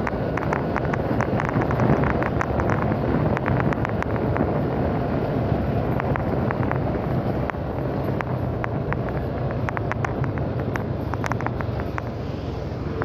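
Wind buffets the microphone of a moving motorcycle.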